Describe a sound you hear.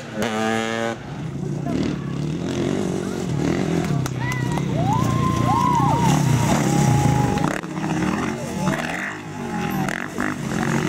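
Dirt bike engines snarl and rev repeatedly nearby.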